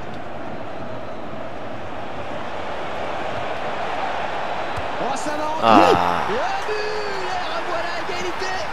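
A stadium crowd murmurs and roars in a football video game.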